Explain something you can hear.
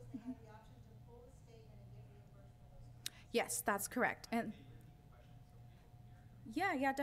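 A young woman speaks calmly through a microphone in a large room.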